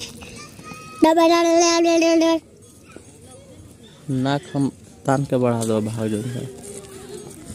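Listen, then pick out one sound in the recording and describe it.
Boys shout and call out to each other outdoors.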